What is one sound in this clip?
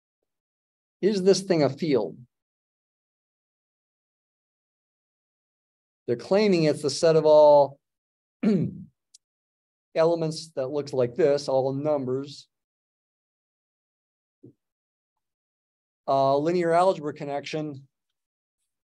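An elderly man speaks calmly through a microphone, in short phrases with pauses.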